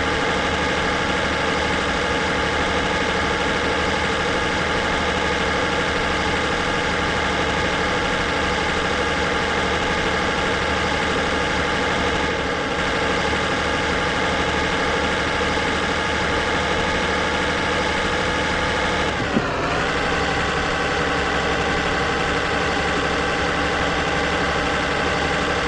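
A truck engine hums steadily at speed.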